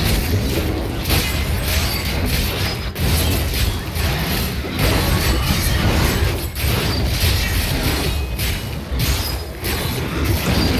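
Magic spells crackle and burst.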